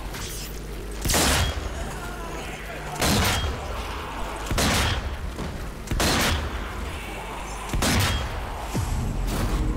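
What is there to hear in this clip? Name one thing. Gunshots and explosions boom in bursts.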